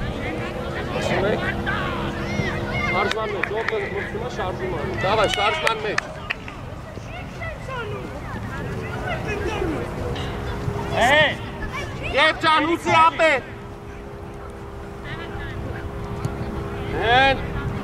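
Young players shout across an open field.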